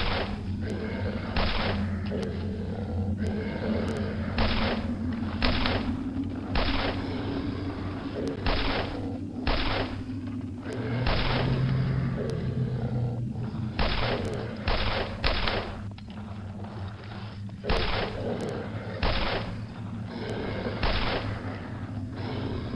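Zombies groan and growl.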